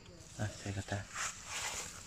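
Footsteps rustle on dry leaves.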